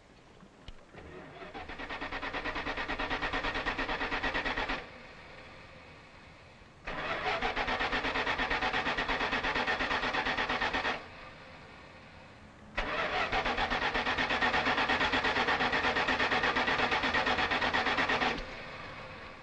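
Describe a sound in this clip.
A car engine cranks over and over in long bursts without starting.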